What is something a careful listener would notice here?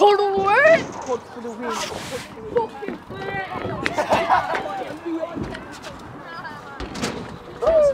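Young people chatter and shout in the background outdoors.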